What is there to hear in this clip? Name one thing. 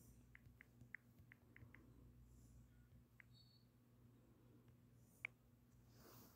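Phone keyboard keys click quickly as a message is typed.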